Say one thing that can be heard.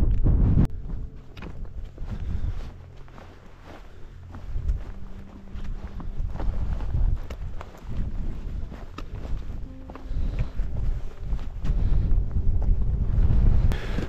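Footsteps crunch on frozen snow.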